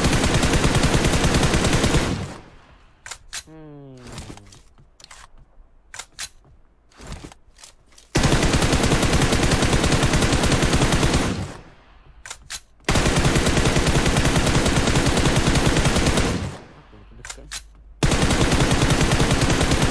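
Automatic rifle fire rattles in long, rapid bursts.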